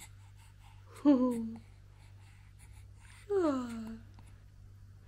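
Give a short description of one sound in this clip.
A baby cries out briefly, twice.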